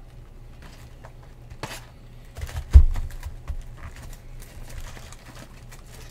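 Cardboard boxes knock softly as they are handled.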